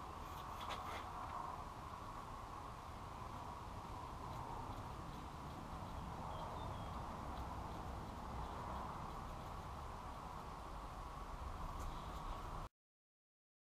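A rubber hose creaks and rubs as hands work it onto a fitting.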